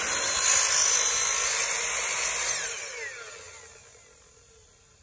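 A miter saw whines loudly and then spins down.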